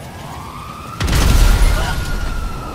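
A car explodes with a loud boom.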